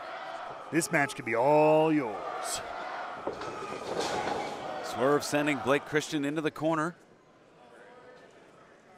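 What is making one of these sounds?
A crowd cheers and shouts in a large echoing hall.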